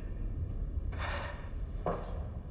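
A man speaks with surprise.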